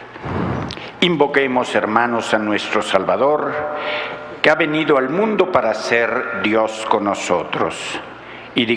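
A man reads aloud calmly into a microphone in a large echoing hall.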